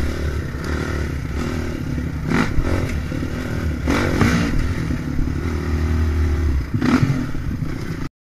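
Tyres rumble and crunch over a bumpy dirt trail.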